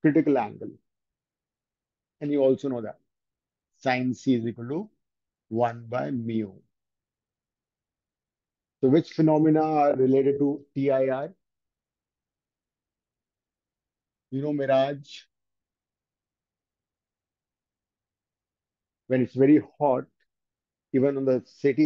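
A man speaks calmly in short phrases through a microphone, with pauses between them.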